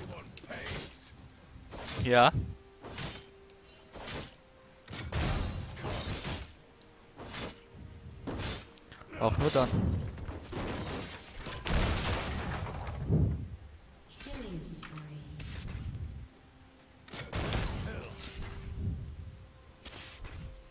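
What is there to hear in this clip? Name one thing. Fantasy battle sound effects whoosh and crackle as spells and blows land.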